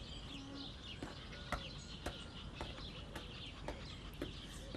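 Footsteps tap on hard ground at an even pace.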